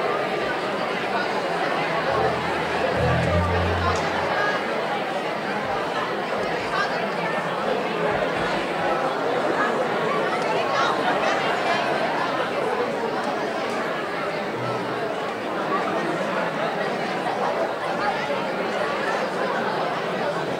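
A live band plays music in a large hall.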